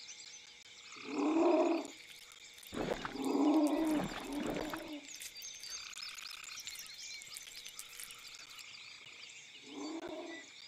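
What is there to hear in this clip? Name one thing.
A wolf growls and whines.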